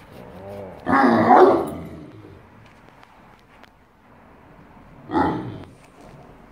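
A Great Dane barks.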